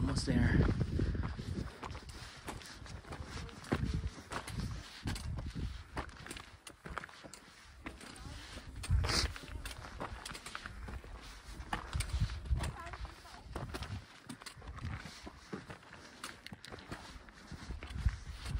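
Footsteps crunch and scrape on loose rocky ground.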